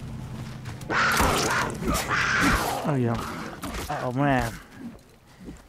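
A big cat snarls and growls fiercely up close.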